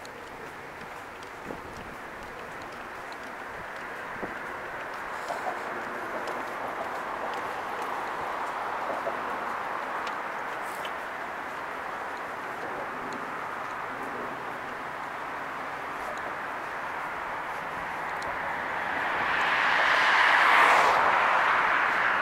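Road traffic hums along a road.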